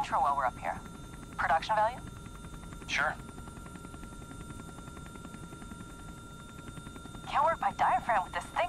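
A helicopter rotor thuds steadily and fast.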